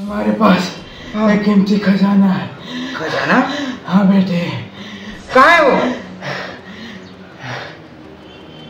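An elderly man moans and speaks weakly, close by.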